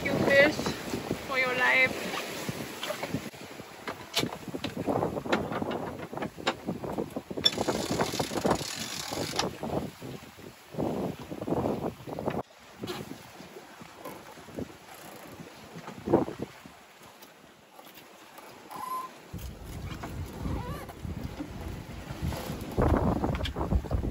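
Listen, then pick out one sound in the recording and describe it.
Waves splash against a boat's hull.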